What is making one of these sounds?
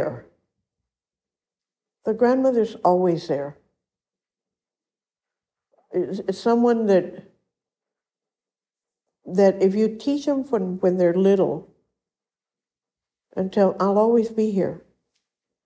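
An elderly woman speaks calmly and slowly, close to a microphone, with pauses.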